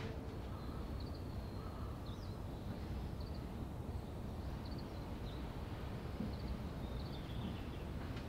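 Wind blows outdoors in steady gusts.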